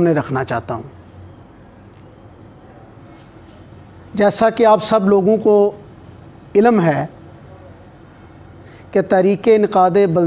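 A middle-aged man speaks calmly into a microphone, in bursts with pauses.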